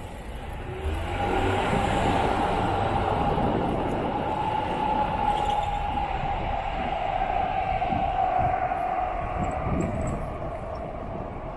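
A car engine hums nearby and slowly pulls away.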